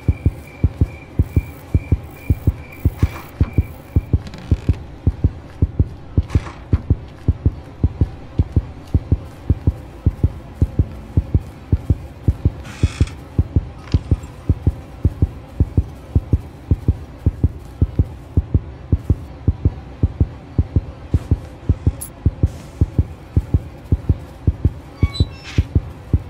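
Footsteps thud on a floor at a walking pace.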